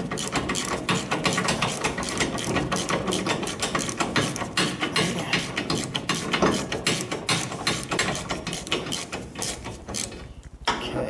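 A wrench clicks rapidly as it is worked back and forth on a bolt.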